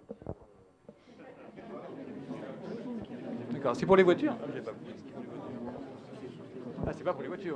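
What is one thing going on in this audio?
A crowd of people murmurs and talks among themselves.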